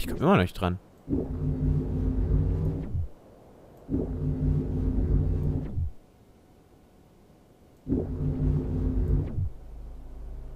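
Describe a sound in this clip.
A grappling line zaps and whooshes through the air.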